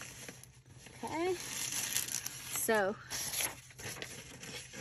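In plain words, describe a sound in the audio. Paper rustles and crinkles as it is handled.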